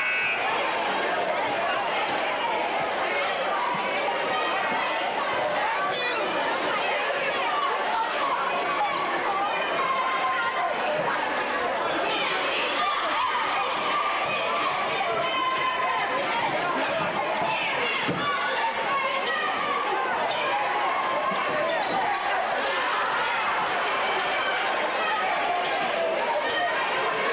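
A crowd chatters and cheers, echoing through a large hall.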